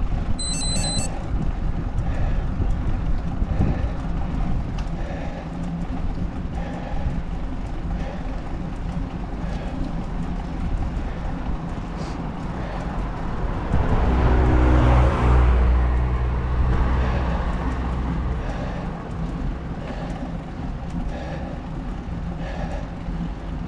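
Small wheels roll steadily over asphalt with a rumbling hiss.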